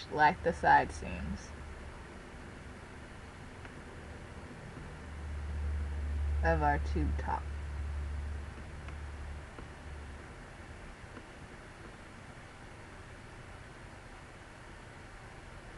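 Cloth rustles softly as it is handled and folded.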